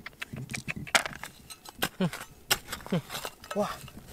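A metal trowel scrapes through gravelly soil.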